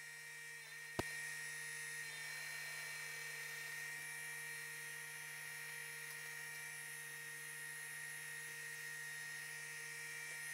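A sewing machine runs steadily, its needle clattering.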